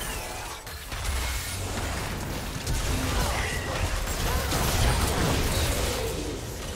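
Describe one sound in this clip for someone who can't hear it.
Game spell effects crackle and clash in a busy fight.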